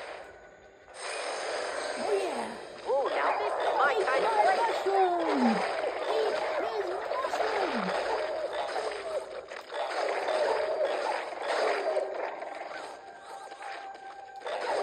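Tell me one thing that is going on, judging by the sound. Game creatures squeal and chatter amid battle effects.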